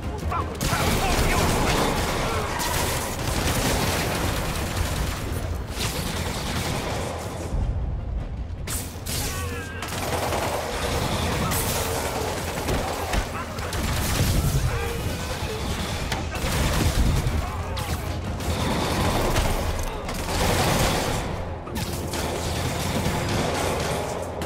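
Punches and kicks thud as a fight rages.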